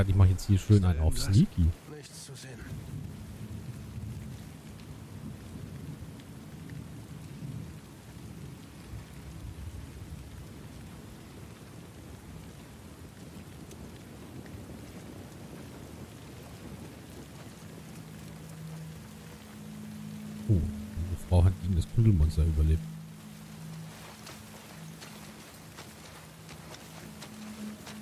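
Footsteps rustle softly through tall grass and ferns.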